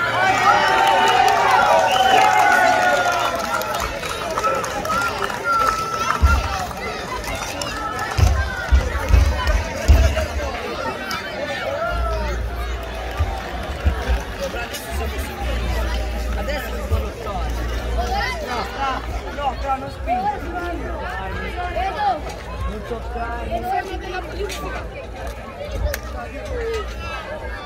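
A crowd of men, women and children chatters and calls out outdoors.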